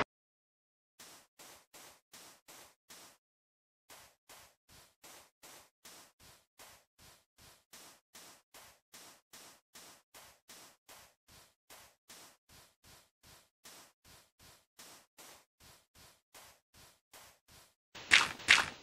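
Footsteps crunch steadily on sand.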